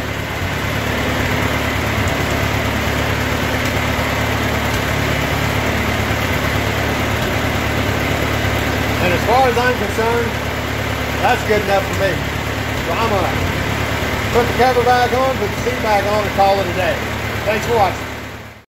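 An old engine runs with a steady, low rumbling drone.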